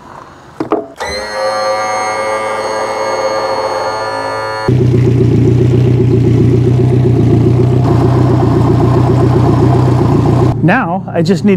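An outboard motor idles with a steady hum.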